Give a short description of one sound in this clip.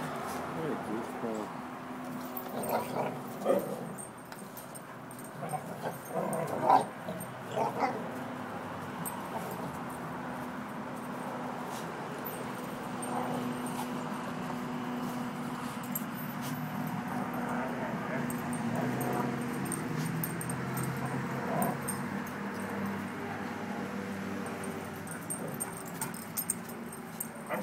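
Dogs growl and snarl as they play-fight.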